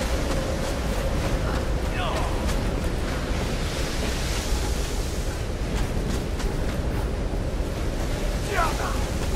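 Footsteps fall quickly on hard ground.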